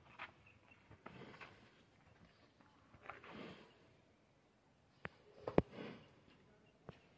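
A buffalo calf snorts and breathes heavily close by.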